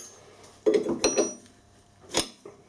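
A metal wrench clinks against a gear nut.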